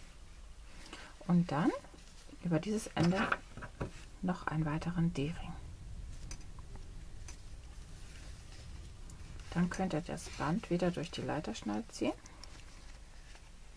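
A fabric strap rustles.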